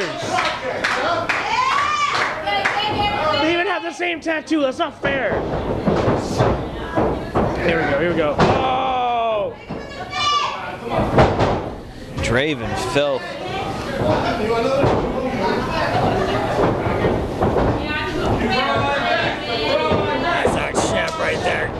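Feet stomp and thud on a wrestling ring mat.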